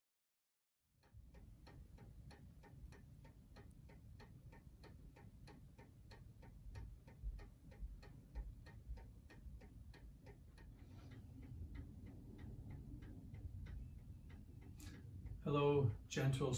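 A clock ticks steadily nearby.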